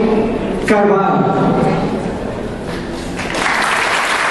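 A young woman speaks into a microphone over loudspeakers in a large echoing room.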